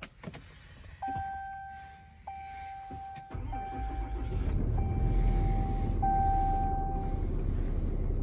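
A dashboard warning chime rings out in short evenly spaced tones.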